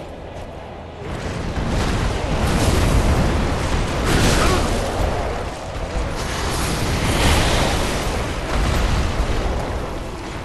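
Heavy thuds and crashes boom as a beast thrashes about.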